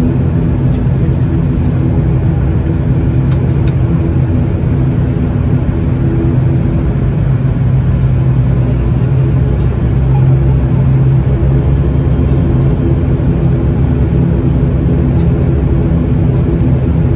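Aircraft propeller engines drone loudly and steadily from close by.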